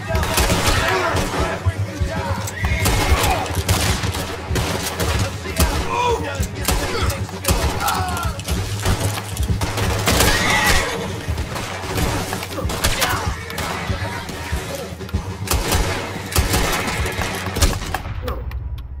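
Gunshots crack repeatedly in quick bursts.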